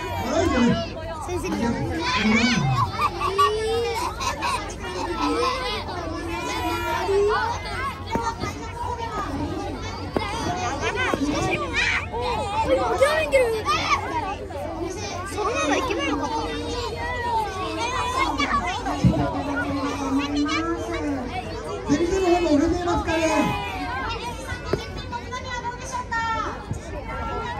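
A crowd of children chatters and shouts outdoors.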